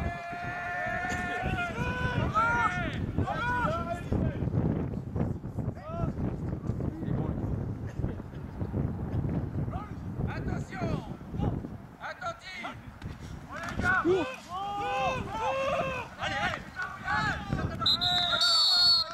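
Young men shout calls across an open field.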